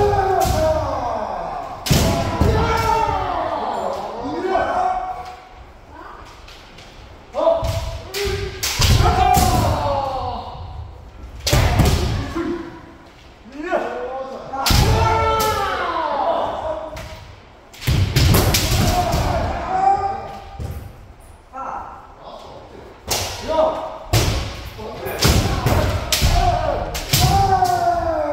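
Feet stamp on a wooden floor.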